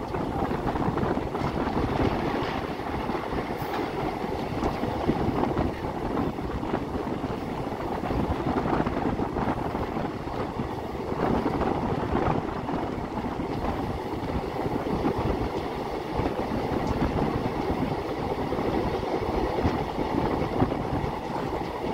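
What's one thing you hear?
Wind rushes past an open train door.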